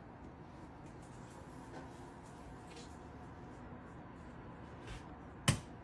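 Paper towels rub and smear across a countertop.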